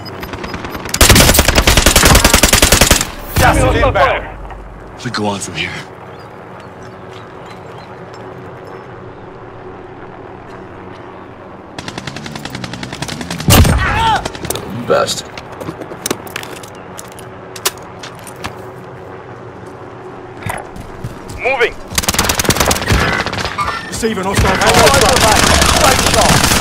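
A gun fires rapid automatic bursts.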